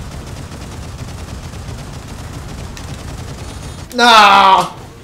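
A giant robot's machine gun fires.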